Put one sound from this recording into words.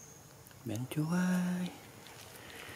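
A young monkey squeals briefly close by.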